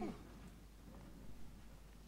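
A fire crackles and burns.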